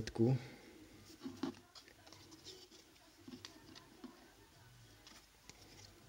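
Trading cards slide and tap on a tabletop.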